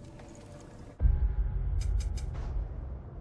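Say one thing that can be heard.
A deep game menu whoosh sounds.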